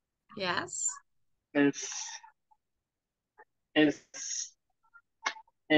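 A woman speaks in short, clear phrases through an online call.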